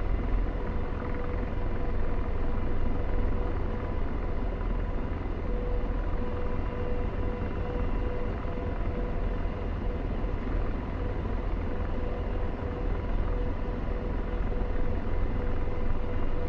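A helicopter engine and rotor drone steadily and loudly from close by.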